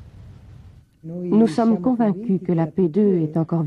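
A middle-aged woman speaks calmly and close by.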